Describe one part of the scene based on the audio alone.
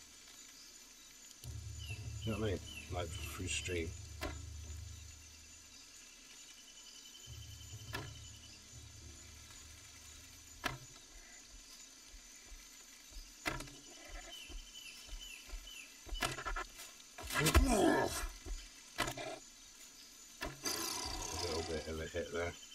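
A bowstring creaks as it is drawn and snaps as arrows are loosed.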